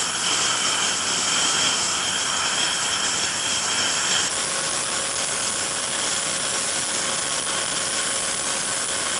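Jet engines roar loudly and steadily close by.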